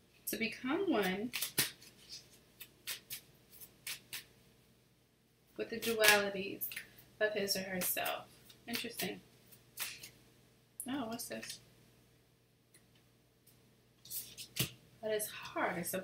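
Cards tap and shuffle in a woman's hands.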